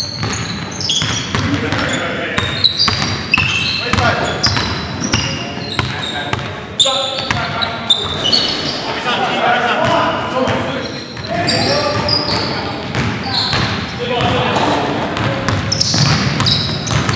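Sneakers squeak sharply on a hard court floor in an echoing hall.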